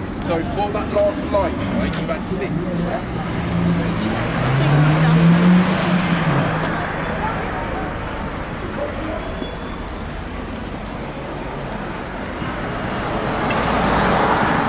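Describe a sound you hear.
Traffic rumbles along a busy street outdoors.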